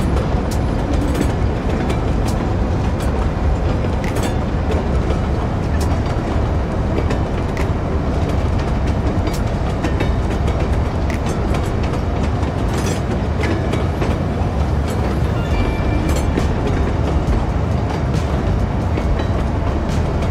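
A train rumbles steadily along the rails at speed.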